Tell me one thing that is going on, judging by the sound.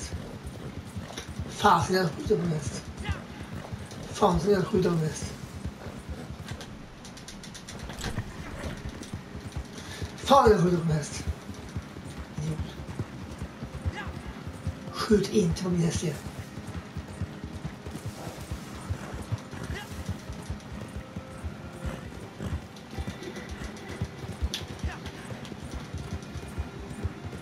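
A horse's hooves thud steadily on soft ground at a gallop.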